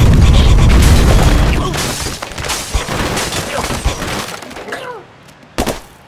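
Wooden blocks crash and clatter as a tower collapses.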